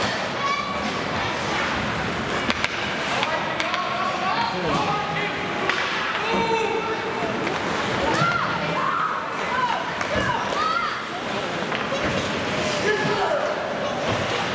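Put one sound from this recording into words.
Young players shout and call out across an echoing rink.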